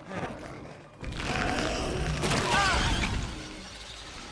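A swirling magical whoosh rises and fades.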